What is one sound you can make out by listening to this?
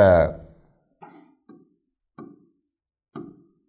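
A marker taps and squeaks on a board.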